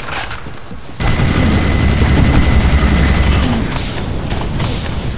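A flamethrower roars loudly with a deep rumble.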